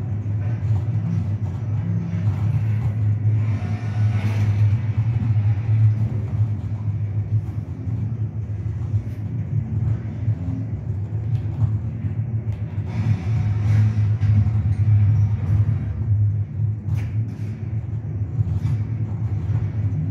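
A low, steady electronic drone plays from a television speaker.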